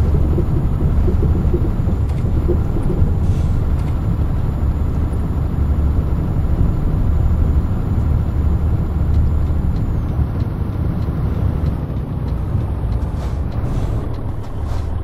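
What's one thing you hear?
A truck engine rumbles steadily while driving over a rough road.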